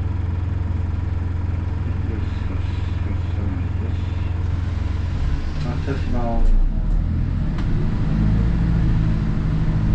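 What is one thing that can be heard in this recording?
A bus engine hums low and steady from inside the bus.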